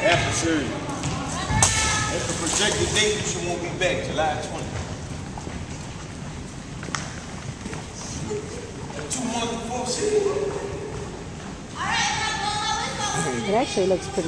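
Young men and women chatter and call out in a large echoing hall.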